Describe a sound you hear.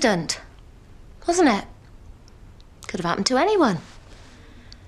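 A woman speaks in short, strained phrases close by.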